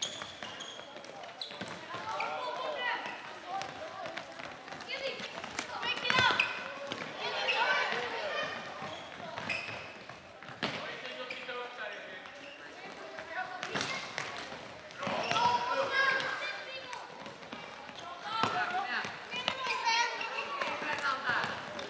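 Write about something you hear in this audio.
Boys shout and call out to each other in a large echoing hall.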